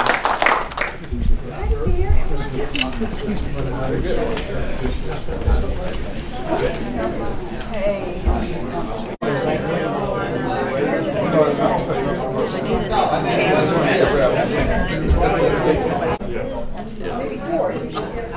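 A crowd of men and women chat all at once nearby.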